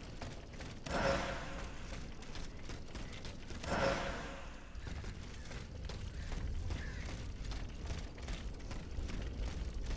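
Footsteps tread steadily across soft, muddy ground.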